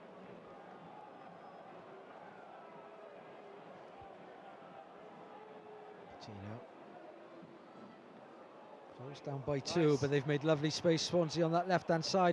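A stadium crowd murmurs and chants in the distance.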